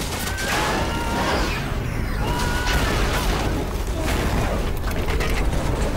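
Engines roar loudly as vehicles race past.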